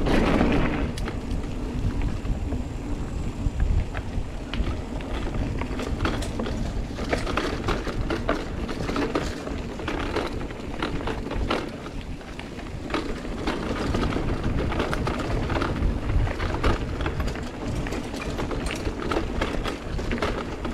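A bicycle frame clatters and clicks over bumps.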